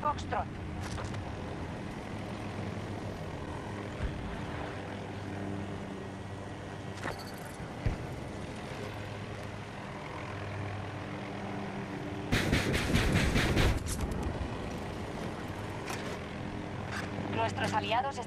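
A helicopter's rotor thumps and its engine hums steadily.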